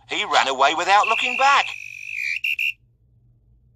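A referee's whistle blows shrilly several times.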